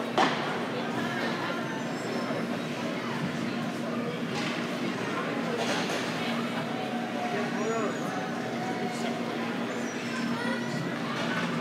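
A crowd of spectators chatters in the background.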